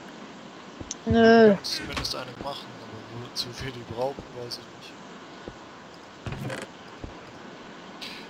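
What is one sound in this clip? A wooden chest creaks open and shut.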